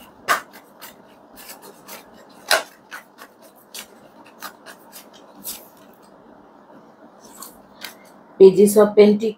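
Playing cards flick and shuffle in hands.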